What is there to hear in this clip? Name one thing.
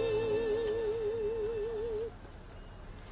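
A woman sings a long held note with vibrato.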